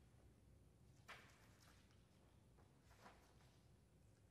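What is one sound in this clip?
A sheet of paper rustles as a page is turned.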